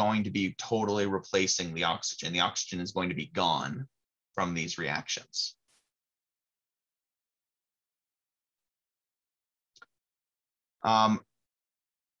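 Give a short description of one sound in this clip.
A man speaks calmly into a close microphone, explaining.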